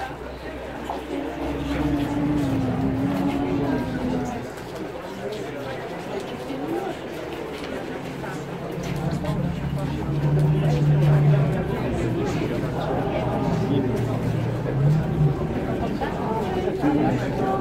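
A crowd of men and women murmurs and talks quietly outdoors.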